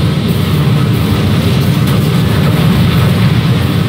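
Rockets whoosh through the air.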